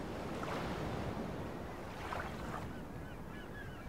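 Waves lap and splash against a wooden boat.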